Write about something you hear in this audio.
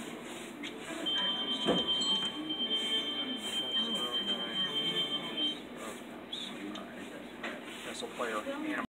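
A slot machine plays bright electronic jingles and chimes.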